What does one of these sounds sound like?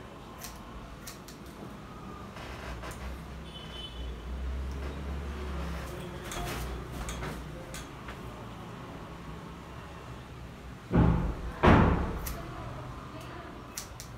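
Scissors snip through hair with short crisp clicks.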